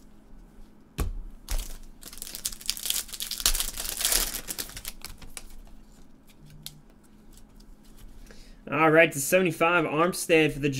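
Plastic card cases click and tap against each other.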